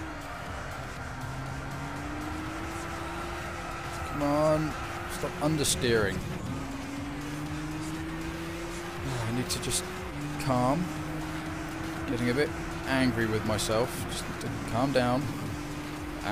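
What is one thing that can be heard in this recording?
A racing car engine hums steadily and climbs in pitch as the car speeds up.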